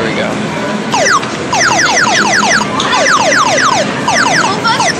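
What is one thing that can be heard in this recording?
A claw machine plays a quick run of rising electronic chimes.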